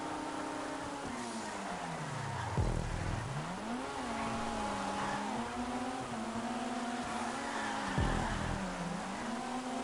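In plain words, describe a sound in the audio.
A car engine's revs fall and rise sharply as the car slows into bends.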